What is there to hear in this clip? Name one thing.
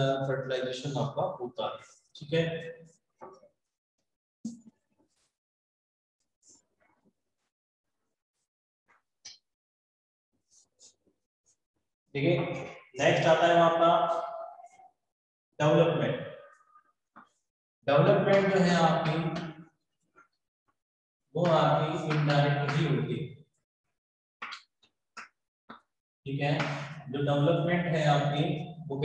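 A man speaks calmly and clearly nearby, explaining.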